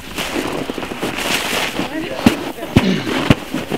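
Boots crunch on packed snow.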